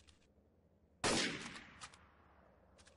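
A single loud rifle shot cracks and echoes away.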